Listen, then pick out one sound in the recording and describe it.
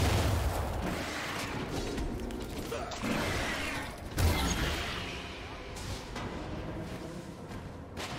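Heavy thuds and hits land on a monster.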